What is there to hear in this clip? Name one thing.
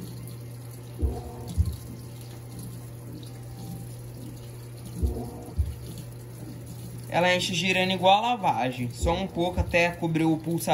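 Laundry sloshes and thumps in a washing machine.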